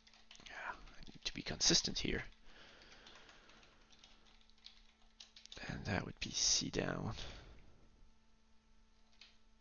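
Keys clatter on a keyboard as someone types.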